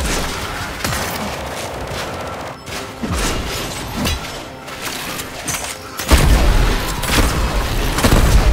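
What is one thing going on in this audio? Energy blasts and explosions crackle and boom in rapid bursts.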